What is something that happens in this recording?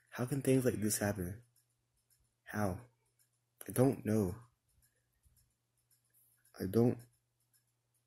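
A young man talks close up in short bursts with animation.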